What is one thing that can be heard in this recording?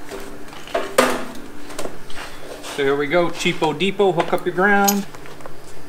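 Metal parts clank and knock as they are set in place.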